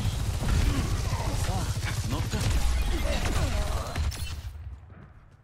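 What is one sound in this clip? A weapon fires in rapid bursts of electronic shots.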